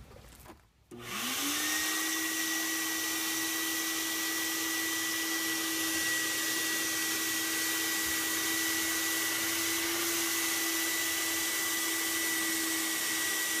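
A wet-dry vacuum motor starts up and runs with a steady, loud whine.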